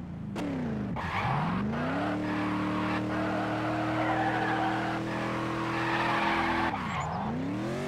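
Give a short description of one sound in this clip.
Tyres screech loudly as a car skids.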